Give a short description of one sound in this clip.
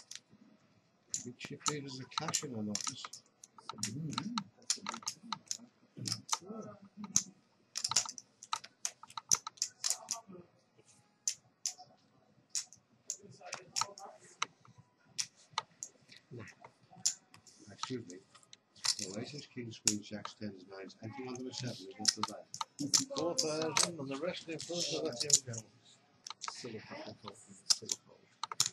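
Poker chips click and clatter on a table.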